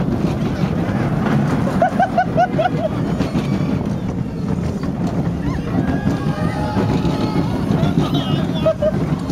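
A ride car rumbles and rattles along its track.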